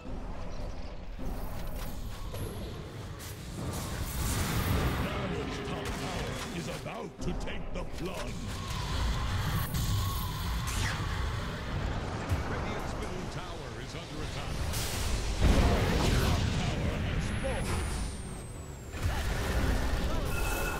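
Spell effects crackle and boom in a battle in a video game.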